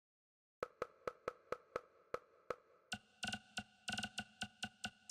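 Short electronic menu ticks click in quick succession, turning brighter and higher partway through.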